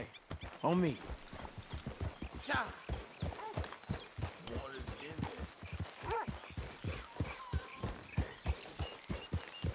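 Horse hooves thud rhythmically on soft ground.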